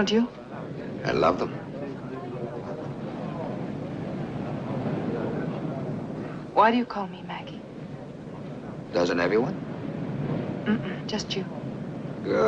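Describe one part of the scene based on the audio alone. A woman answers softly nearby.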